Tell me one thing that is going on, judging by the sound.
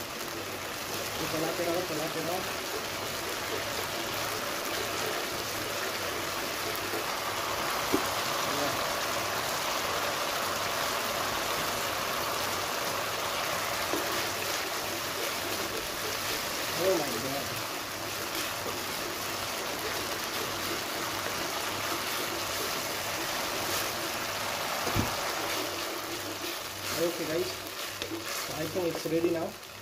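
Sauce sizzles and bubbles steadily in a pan.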